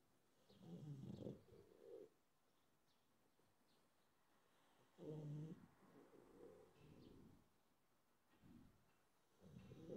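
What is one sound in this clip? A sleeping dog snores loudly close by, in slow rumbling breaths.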